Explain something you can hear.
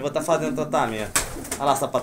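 A pigeon flaps its wings in flight.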